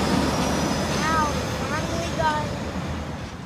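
A truck horn blasts a few short honks.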